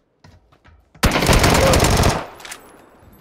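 An automatic rifle fires a loud, rapid burst.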